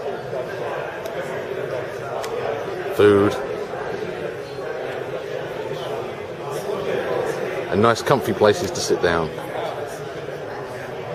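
Several men and women chat in a room nearby.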